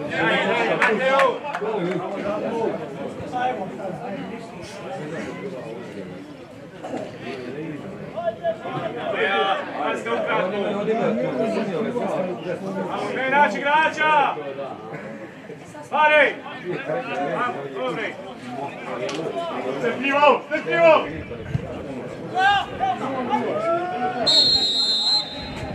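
Spectators chatter and call out nearby outdoors.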